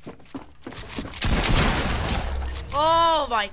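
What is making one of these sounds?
A game weapon fires a loud, crackling energy blast.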